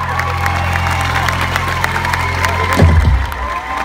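A person claps hands close by.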